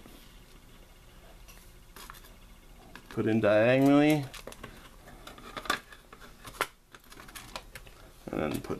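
A plastic cartridge knocks and clicks softly against a wooden table.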